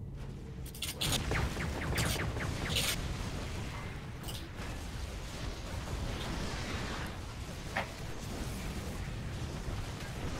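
Game explosions boom.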